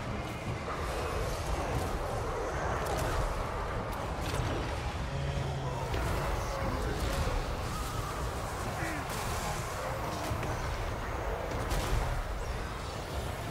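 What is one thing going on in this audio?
Battle noise of clashing weapons rumbles on steadily.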